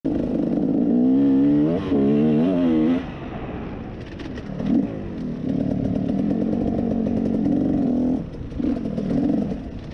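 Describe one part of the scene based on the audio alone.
A dirt bike engine revs up and down loudly close by.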